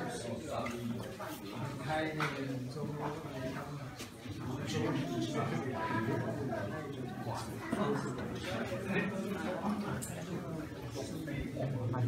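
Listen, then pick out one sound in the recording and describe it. A crowd of people chatter close by.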